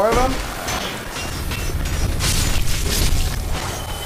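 A sword slashes and thuds into a creature.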